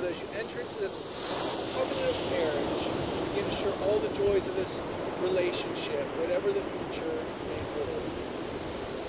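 A man speaks calmly, reading out nearby.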